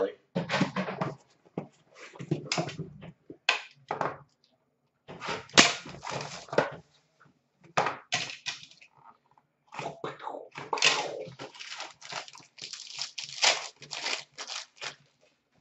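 Card packs tap and rustle against a glass counter.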